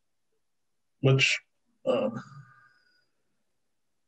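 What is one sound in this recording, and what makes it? A man speaks a few short words over an online call.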